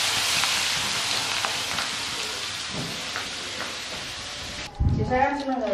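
Food sizzles and hisses in hot oil in a pan.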